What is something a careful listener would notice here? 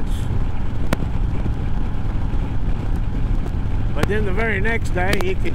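A motorcycle engine hums steadily at highway speed.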